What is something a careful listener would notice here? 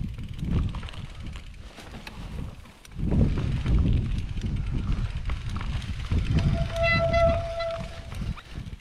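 Bicycle tyres roll and bump over rough grass.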